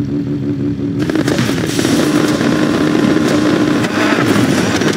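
Fireworks crackle and pop.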